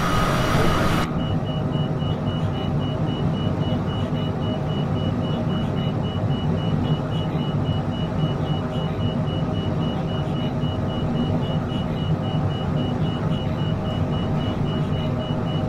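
Jet engines hum in a steady muffled drone from inside a cockpit.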